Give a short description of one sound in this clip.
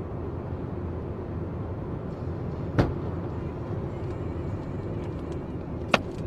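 A car's tyres roar steadily on a highway.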